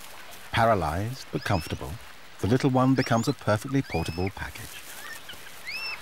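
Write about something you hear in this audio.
An animal's paws rustle through dry leaves on the ground.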